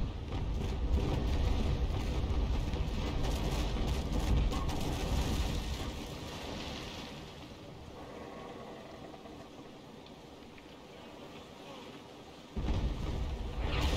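Waves wash and splash against a wooden ship's hull.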